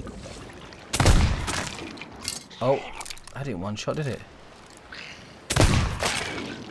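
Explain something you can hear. A pistol fires loud shots.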